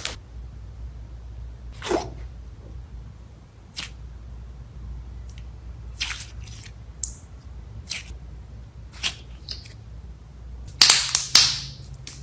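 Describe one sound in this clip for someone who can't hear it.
Soft jelly slime squelches and clicks as it is pressed.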